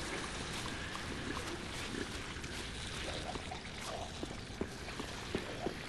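Armoured footsteps clank and thud on stone at a steady walking pace.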